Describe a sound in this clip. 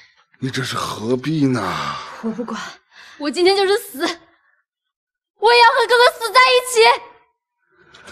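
A young woman cries and speaks in a tearful, pleading voice close by.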